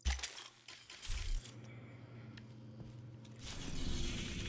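Footsteps sound on a hard floor as a character walks.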